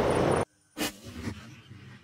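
A firework fountain hisses and sputters.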